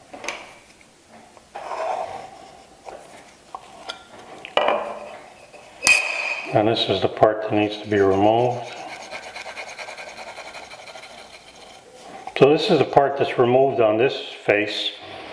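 A pencil scratches lines on wood.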